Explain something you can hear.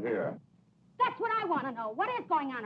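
A young woman speaks urgently.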